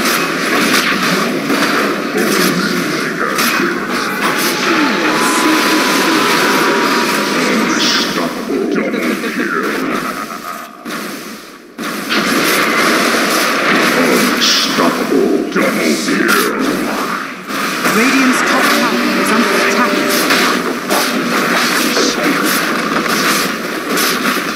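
Spell effects crackle and burst in a game battle.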